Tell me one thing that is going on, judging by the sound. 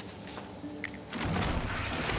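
Sparks fizz and crackle.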